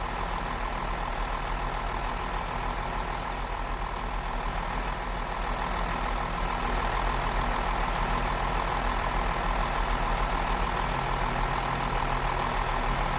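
A diesel train engine idles with a steady low hum.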